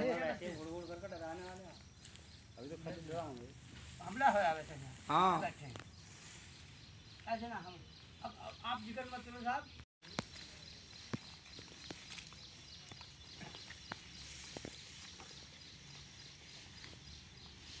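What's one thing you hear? Sticks swish and thrash through tall grass.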